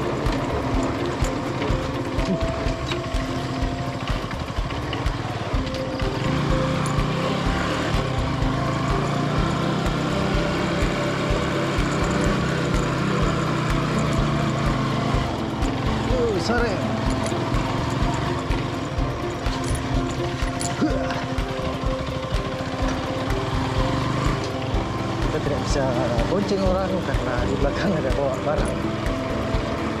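A motorcycle engine hums and rumbles steadily close by.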